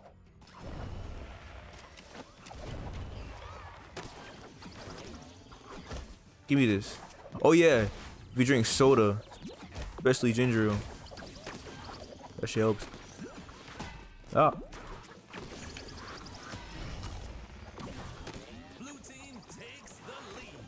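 Video game weapons zap and blast in quick bursts.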